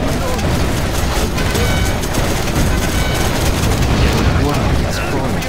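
Explosions boom and rumble in a battle.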